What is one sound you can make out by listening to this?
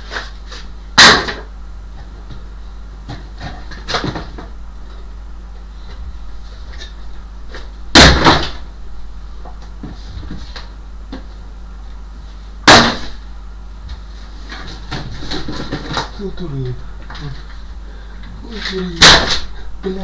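Objects thump and clatter loudly inside a wooden cupboard.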